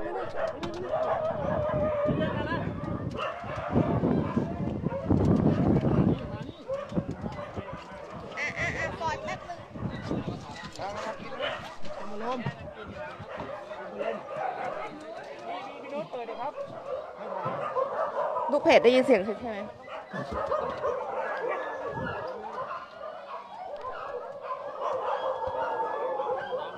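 Men talk nearby, outdoors.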